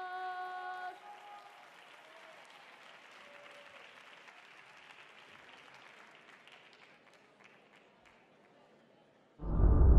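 A large audience murmurs softly in the hall.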